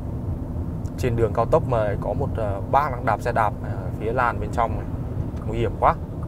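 A young man speaks calmly into a clip-on microphone, close by.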